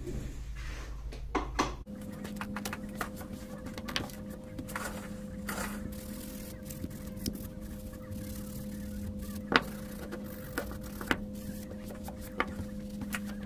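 Hard plastic parts click and knock against a table.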